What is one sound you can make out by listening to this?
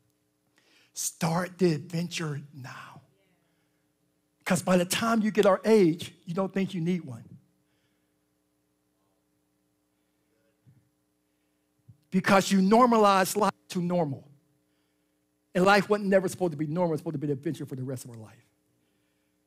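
A man speaks with animation through a microphone in bursts, with pauses between.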